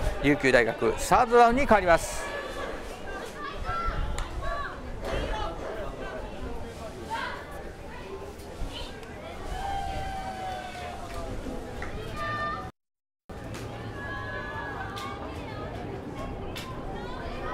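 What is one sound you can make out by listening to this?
A crowd of spectators cheers and shouts from the sidelines outdoors.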